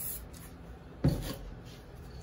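A spray can knocks down onto a hard surface.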